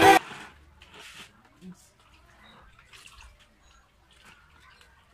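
Water sloshes and splashes softly in a bucket.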